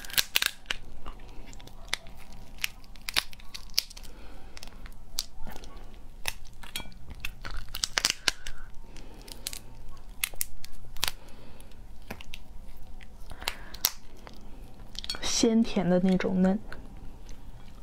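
Lobster shell cracks and crunches sharply, close up.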